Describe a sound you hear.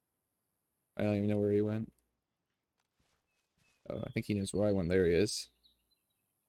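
A young man speaks with animation, close to a microphone.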